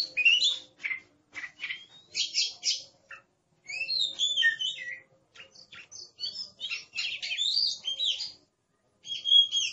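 A songbird sings a varied, warbling song of whistles and chirps close by.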